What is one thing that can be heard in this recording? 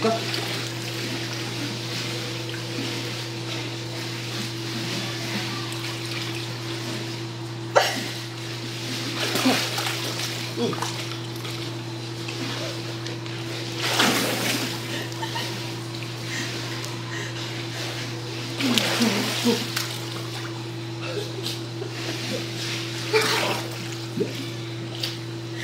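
Hot spring water flows and laps steadily close by.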